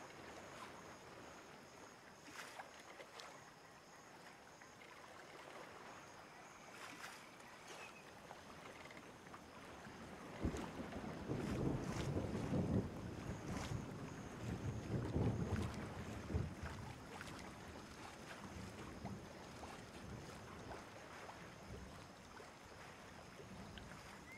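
Waves wash and splash against a sailing ship's hull.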